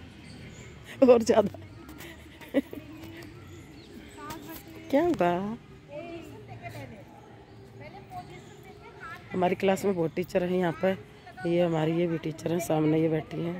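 A woman speaks with animation close by, outdoors.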